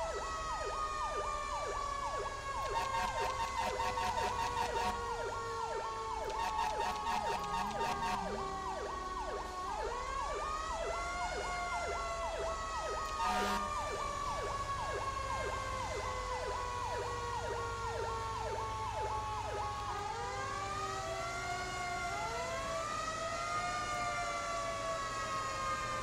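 A truck engine hums low.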